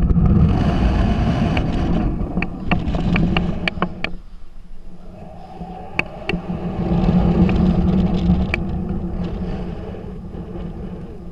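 Wind rushes and buffets against a microphone as a young woman swings through the air on a rope.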